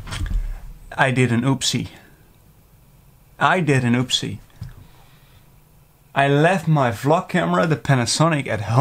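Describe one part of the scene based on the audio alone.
A young man talks calmly and close to a microphone, in short bursts.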